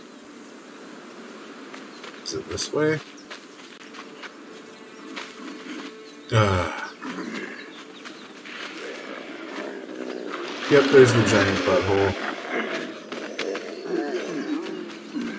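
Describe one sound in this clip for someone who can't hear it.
Footsteps run over sandy ground.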